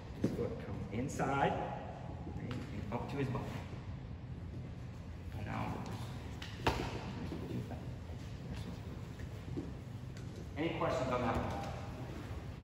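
A man talks calmly in a large echoing room.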